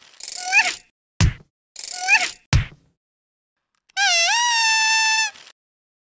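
A party horn toots loudly.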